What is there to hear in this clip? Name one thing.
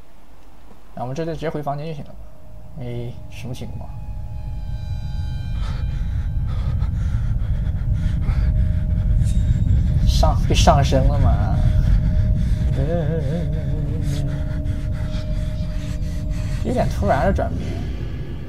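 A young man speaks in short, strained bursts close by.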